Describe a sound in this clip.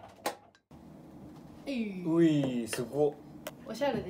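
A plate is set down with a clack.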